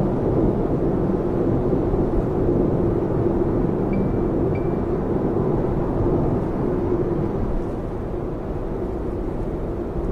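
Tyres roar steadily on the road, heard from inside a car.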